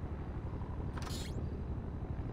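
A fist knocks on a wooden door.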